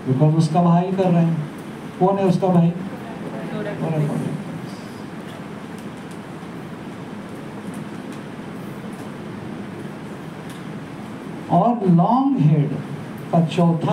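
A middle-aged man lectures calmly through a headset microphone, in pauses.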